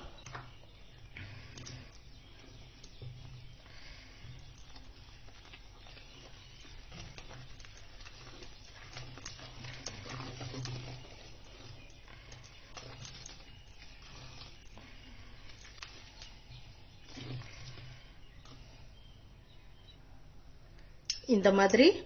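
A wire whisk clinks and scrapes against a metal bowl while beating thick batter.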